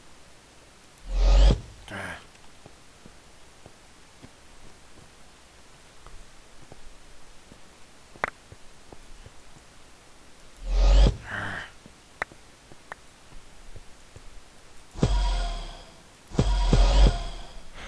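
Short clicks sound as items are picked from a game menu.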